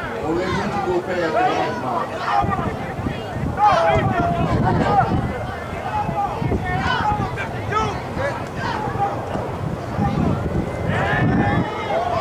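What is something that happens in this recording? A crowd of spectators cheers and shouts from the sidelines.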